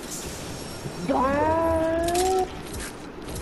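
A treasure chest opens with a bright shimmering chime.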